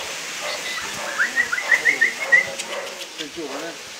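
A dog pants quickly nearby.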